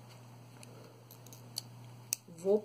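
Scissors snip a thread.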